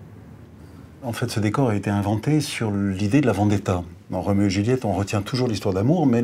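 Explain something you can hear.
A middle-aged man speaks calmly and thoughtfully, close to a microphone.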